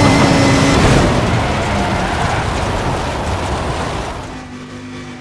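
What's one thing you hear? Tyres scrape and skid across loose dirt.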